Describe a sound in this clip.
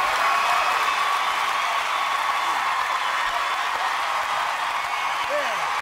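Audience members whoop and scream.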